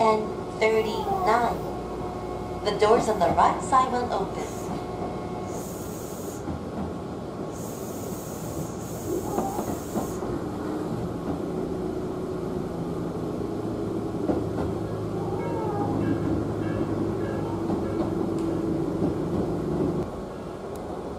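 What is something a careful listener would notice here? A train rumbles along its tracks, heard from inside a carriage.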